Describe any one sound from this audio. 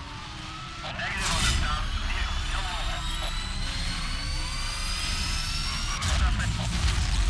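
A car exhaust pops and bangs with flames.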